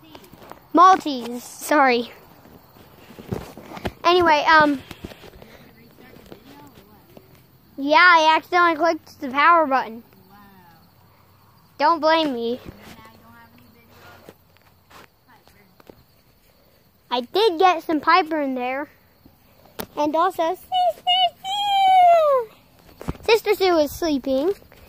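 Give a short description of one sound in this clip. A young boy talks with animation close to a phone's microphone.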